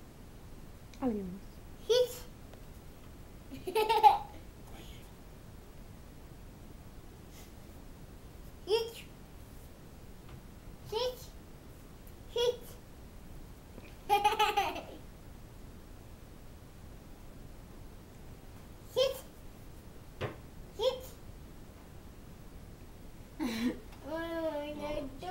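A toddler boy calls out short commands close by.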